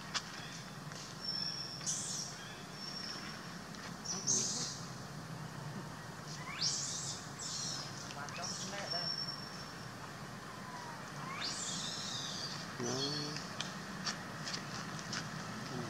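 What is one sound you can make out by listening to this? Leaves and branches rustle as monkeys climb in a tree.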